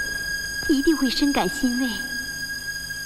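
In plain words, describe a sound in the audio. A young woman speaks softly and earnestly.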